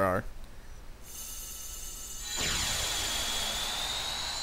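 A magical burst of energy swells with a bright, ringing shimmer.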